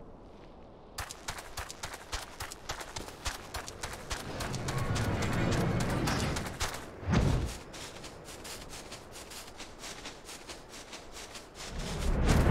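Footsteps run quickly over the ground.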